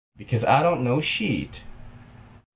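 A young man speaks calmly and close into a microphone.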